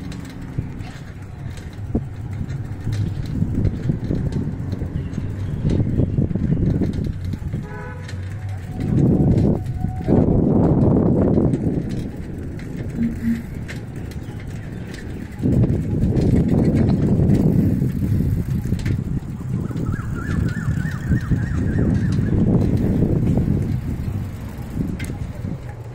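Wind rumbles and buffets past outdoors, rising and falling in gusts.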